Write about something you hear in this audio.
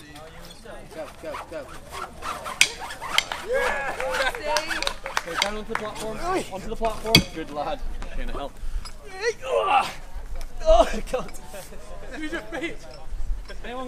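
A crowd of young men and women cheers and shouts encouragement outdoors.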